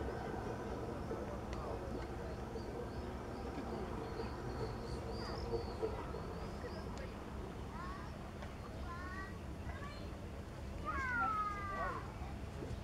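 Small waves lap gently at the water's edge.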